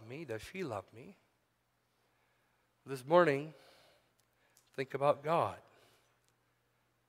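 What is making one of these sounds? A middle-aged man speaks slowly and deliberately into a microphone, with pauses between phrases.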